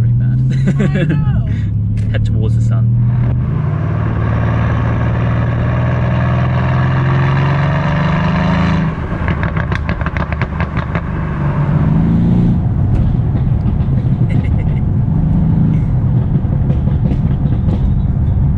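A car engine rumbles deeply while cruising.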